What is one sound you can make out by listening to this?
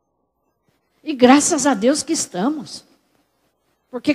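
A woman speaks with animation into a headset microphone.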